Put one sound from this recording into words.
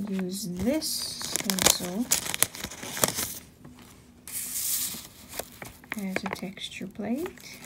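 Paper rustles and slides.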